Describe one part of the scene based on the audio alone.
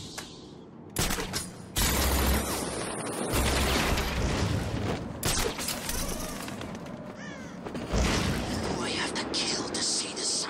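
Wind rushes loudly past during a glide through the air.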